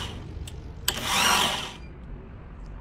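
An electric drill whirs briefly.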